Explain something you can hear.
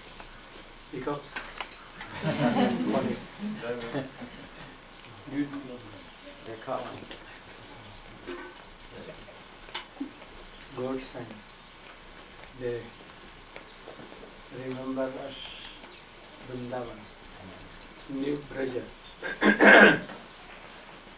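An elderly man speaks calmly into a microphone, heard through a loudspeaker with pauses between phrases.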